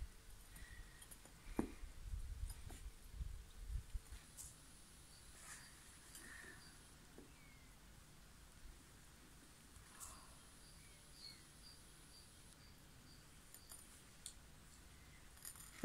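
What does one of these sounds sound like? A metal rod scrapes and knocks against paving stones.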